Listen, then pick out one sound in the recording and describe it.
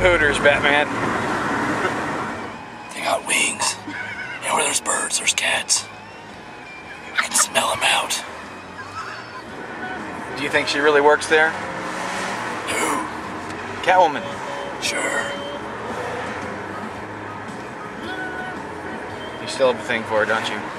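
A car's tyres hum steadily on the road from inside the car.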